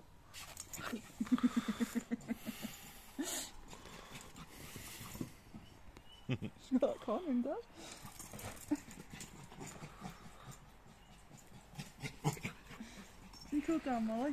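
A small dog yips and whines excitedly.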